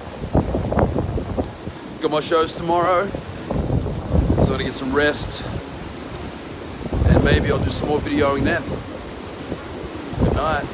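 Wind blows against the microphone outdoors.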